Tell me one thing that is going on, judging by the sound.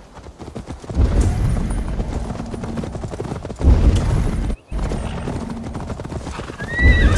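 A horse's hooves thud steadily over soft ground.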